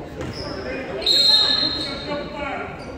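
A referee's whistle blows sharply in an echoing gym.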